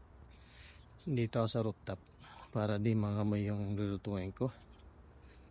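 A man speaks calmly, close to a phone microphone.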